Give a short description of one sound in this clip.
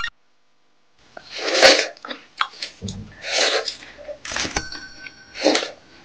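Juicy watermelon crunches loudly between close biting teeth.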